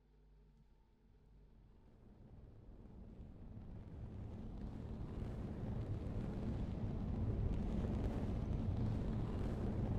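Static hiss swells steadily louder into a harsh roar.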